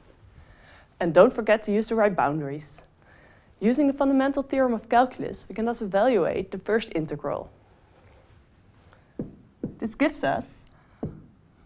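A young woman speaks calmly and clearly into a microphone nearby.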